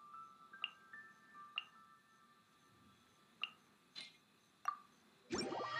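Game menu clicks chime softly.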